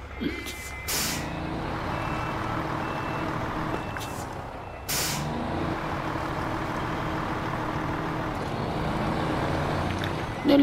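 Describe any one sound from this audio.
A heavy truck engine rumbles steadily as the truck drives slowly.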